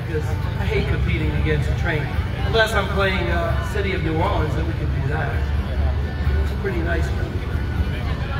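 A young man talks through a microphone and loudspeaker, outdoors in wind.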